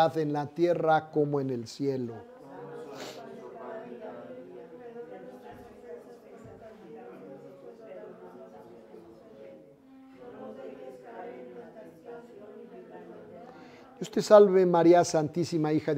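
A man sings a prayer loudly and close by.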